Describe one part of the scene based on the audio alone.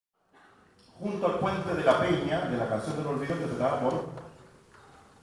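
A man sings loudly through a microphone in an echoing hall.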